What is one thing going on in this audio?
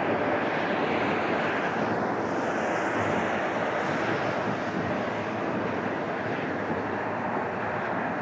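A jet plane roars steadily overhead.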